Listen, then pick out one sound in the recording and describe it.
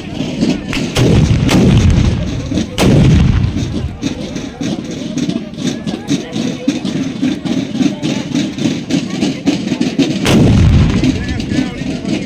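A crowd of people shouts and chatters in the distance.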